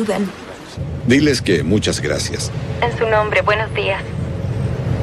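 A man speaks on a phone.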